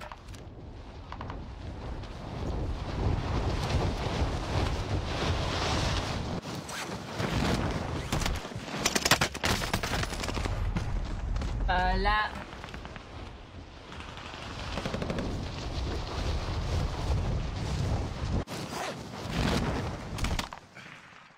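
Wind rushes loudly past during a freefall.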